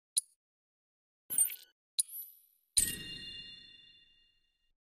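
Game menu clicks and chimes sound briefly.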